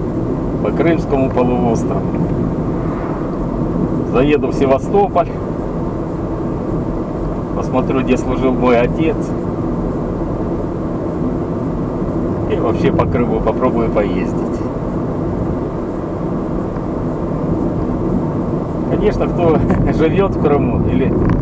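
Tyres roll over the road with a steady roar.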